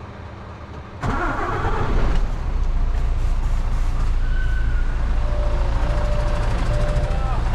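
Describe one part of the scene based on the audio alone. A truck's diesel engine starts up and then idles with a low, steady rumble.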